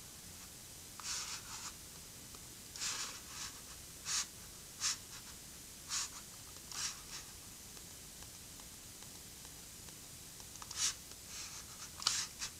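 A middle-aged man speaks quietly and calmly close to a microphone.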